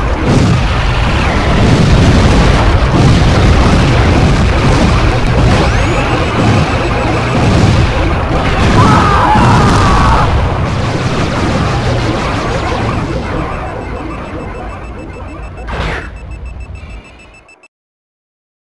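A video game car engine roars steadily.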